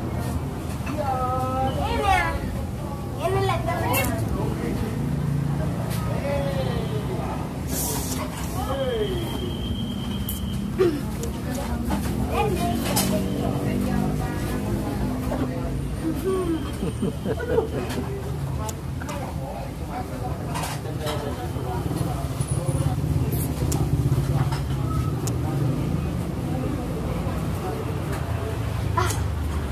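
Children shout and chatter excitedly nearby outdoors.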